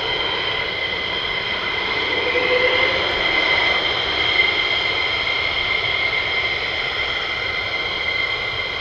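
A jet engine whines steadily as an aircraft taxis nearby.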